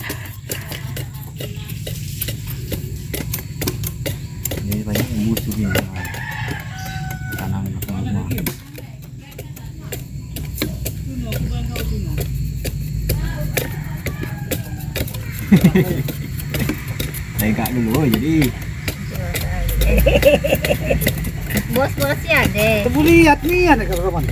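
A machete chops into sugarcane stalks.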